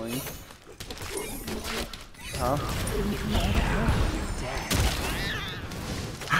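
Magical blasts whoosh and crackle in a fight.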